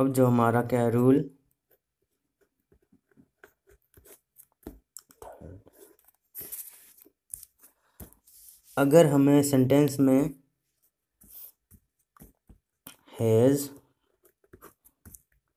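A pen scratches while writing on paper.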